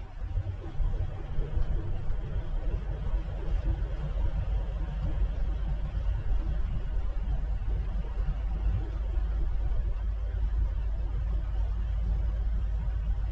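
A vehicle's engine hums steadily as it drives along.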